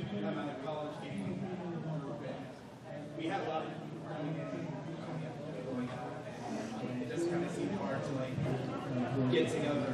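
A young woman talks calmly into a microphone, heard over loudspeakers in a large echoing hall.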